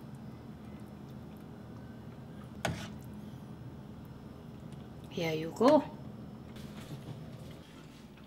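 A ladle scrapes and clinks against a pot.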